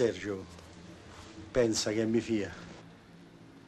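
An older man speaks in a low voice close by.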